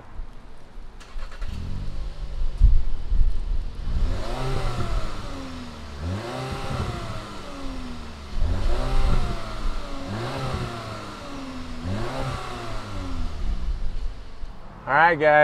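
An electric car roof whirs and hums as it folds.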